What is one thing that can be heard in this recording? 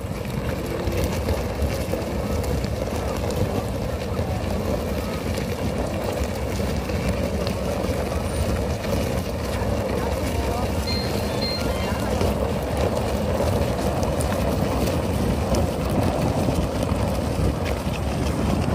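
A weighted tyre scrapes as bullocks drag it over a dirt road.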